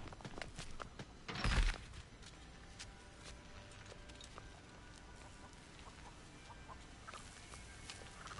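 Footsteps scuff over dirt and grass.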